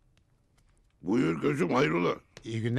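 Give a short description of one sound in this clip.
A man speaks loudly and firmly nearby.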